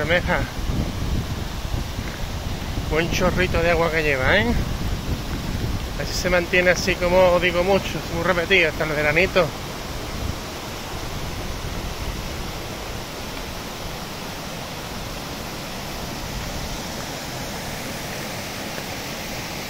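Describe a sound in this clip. A muddy river rushes and roars over rocks nearby.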